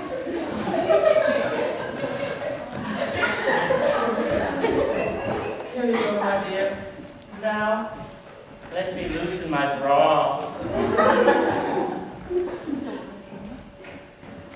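A young man speaks loudly and with feeling, some distance away in an echoing room.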